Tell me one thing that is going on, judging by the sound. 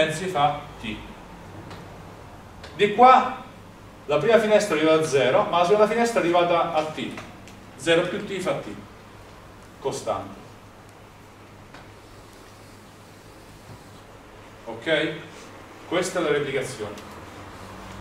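A man lectures calmly in a slightly echoing room.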